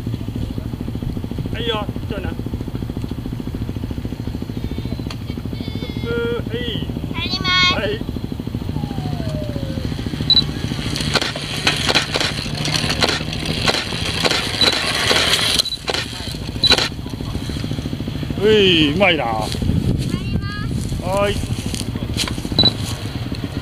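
A child's small electric motorbike whirs softly as it rolls along.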